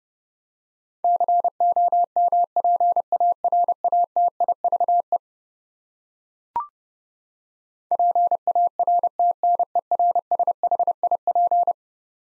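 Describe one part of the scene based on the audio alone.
Morse code beeps out in quick bursts of a steady tone.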